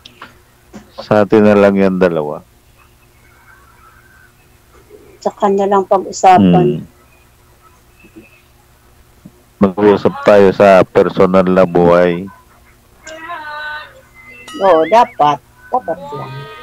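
A man sings loudly into a microphone over an online call.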